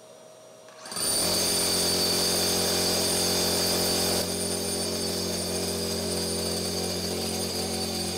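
A hammer drill grinds steadily into concrete.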